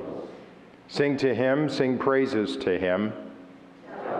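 A man chants in a sung voice through a microphone in an echoing hall.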